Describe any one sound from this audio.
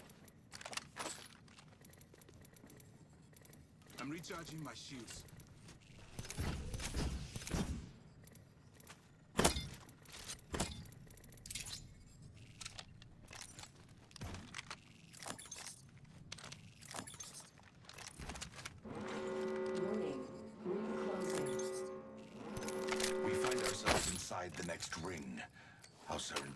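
Short clicks and clatters sound as gear is picked up one item after another.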